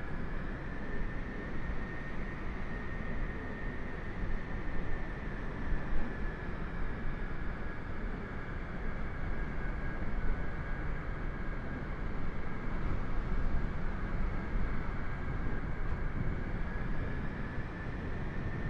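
A jet airliner's engines roar and whine steadily.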